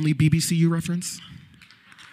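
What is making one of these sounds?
A man speaks with animation into a microphone, echoing through a hall.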